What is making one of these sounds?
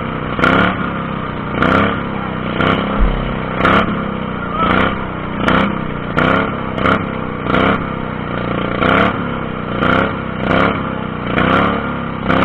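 A small engine roars and revs up and down in close.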